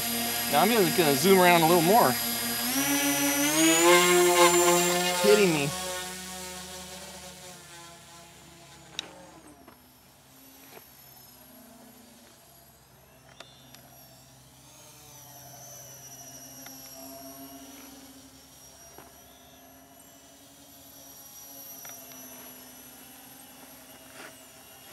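A small electric propeller motor whines, revving up and down sharply before settling into a steady drone that fades as it flies away.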